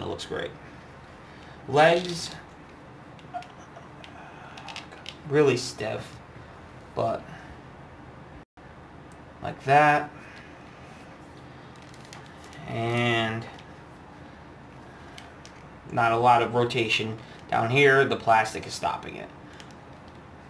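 Plastic joints of a toy figure click softly as they are bent.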